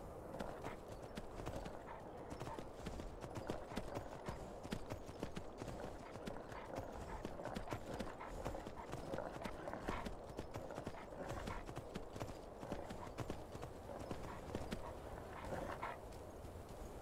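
Hooves crunch on snow as a horse gallops.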